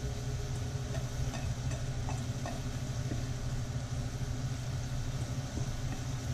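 Food tumbles into a hot pan and sizzles.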